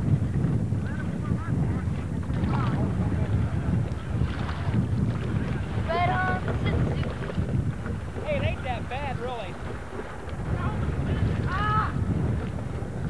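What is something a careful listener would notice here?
Young people call out and laugh nearby.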